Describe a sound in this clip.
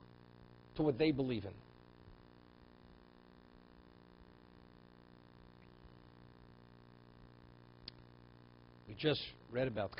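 An elderly man speaks calmly into a microphone, in short phrases with long pauses.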